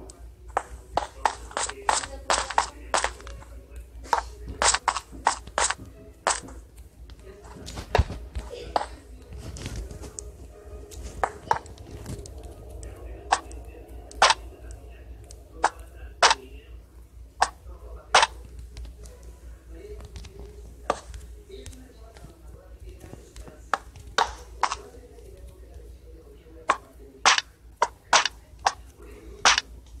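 Blocks are placed with short, sharp clicks, one after another in quick bursts.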